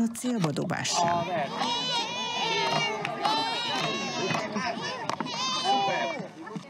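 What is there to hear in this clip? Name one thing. A group of young children shout and cheer excitedly outdoors.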